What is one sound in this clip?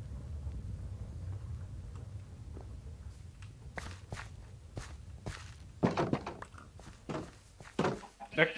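Footsteps crunch over gravel and grass.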